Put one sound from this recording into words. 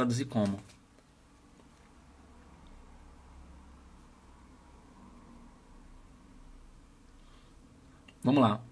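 A young man speaks briefly and calmly, close to the microphone.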